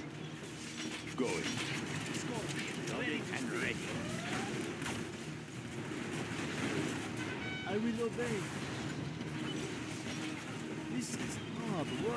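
Guns fire in scattered bursts during a battle.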